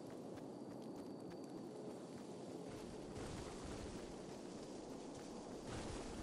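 Quick footsteps patter over grass.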